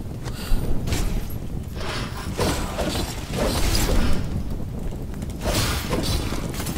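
Heavy hits thud with a low rumble.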